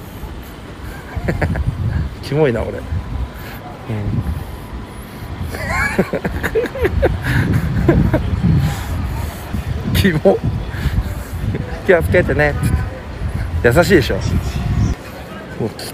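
City traffic hums in the distance outdoors.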